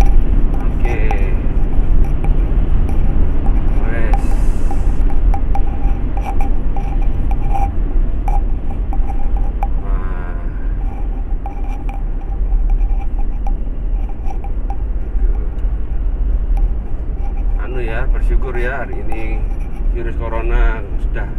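A car engine hums steadily with tyre noise on the road inside the cabin.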